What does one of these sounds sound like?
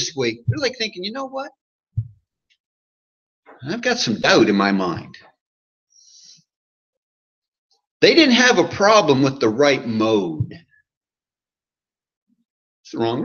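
A man speaks calmly and steadily, heard through a microphone in a quiet room, with pauses between phrases.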